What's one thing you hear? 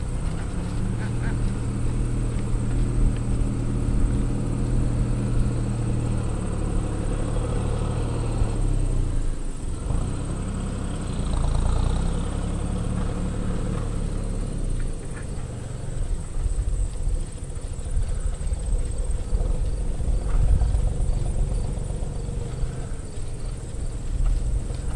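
A horse trots with soft hoofbeats on sand.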